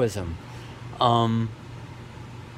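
A middle-aged man speaks briefly close by, in short bursts.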